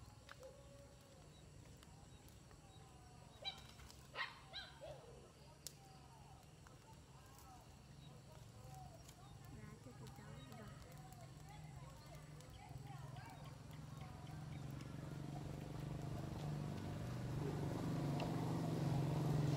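A wood fire crackles softly outdoors.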